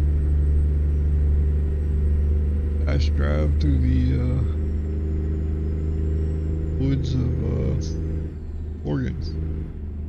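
A truck engine drones steadily at low speed.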